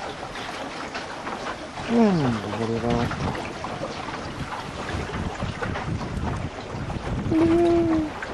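Small waves splash and lap against a sailboat's hull.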